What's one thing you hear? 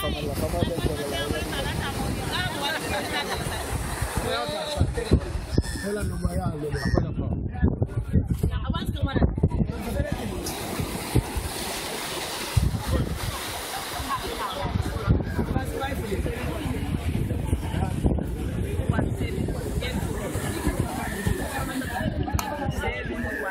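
Several men and women chatter nearby outdoors.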